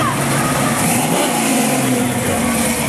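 A car engine revs deeply as a car passes close by.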